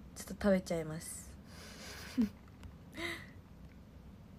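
A young woman speaks animatedly close to a microphone.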